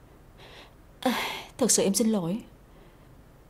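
A young woman speaks softly and emotionally nearby.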